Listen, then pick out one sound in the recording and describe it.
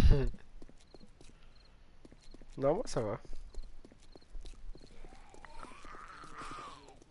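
Footsteps crunch steadily on a stony path.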